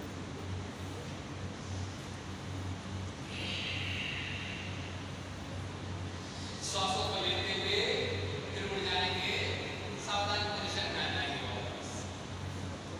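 Many electric fans whir steadily in a large echoing hall.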